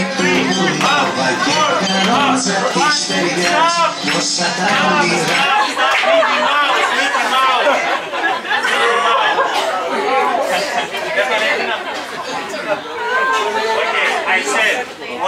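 A crowd of adult men and women sing together close by.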